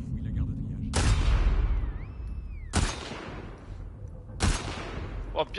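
A rifle fires loud, echoing shots.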